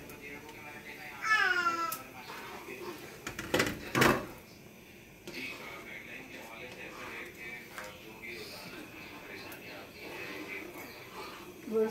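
A ladle stirs and scrapes in a pan of broth.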